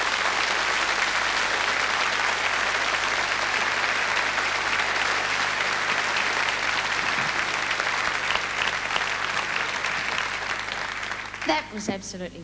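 A large audience applauds loudly in a big hall.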